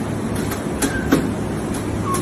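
A penguin chick is set down on a metal scale with a soft thud.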